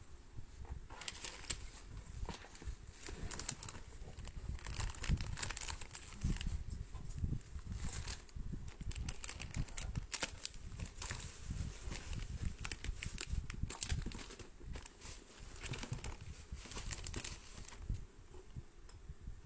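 Plastic wrapping crinkles and rustles as hands dig through items.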